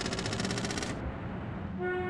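An electronic pinball game beeps in a rapid buzzing burst.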